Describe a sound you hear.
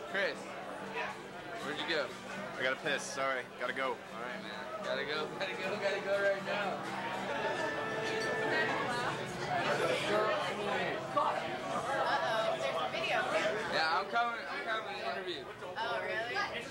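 Many men and women chatter loudly all around, close by.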